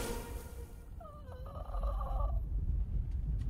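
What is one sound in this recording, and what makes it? A male cartoon character groans weakly up close.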